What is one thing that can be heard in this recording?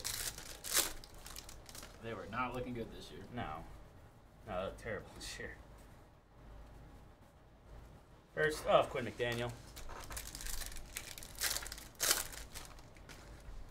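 Cards and foil wrappers crinkle and rustle as hands handle them.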